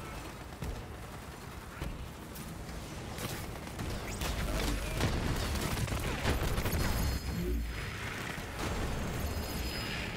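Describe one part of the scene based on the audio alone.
Electric energy blasts zap and crackle.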